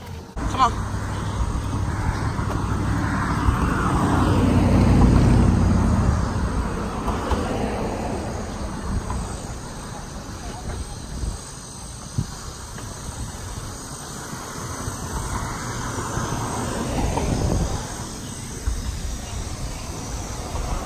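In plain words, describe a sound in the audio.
Wind buffets outdoors, rising and falling.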